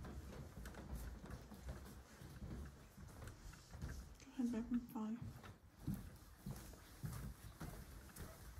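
Footsteps shuffle across a hard floor indoors.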